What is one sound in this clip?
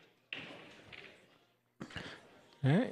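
Pool balls clack together on a table.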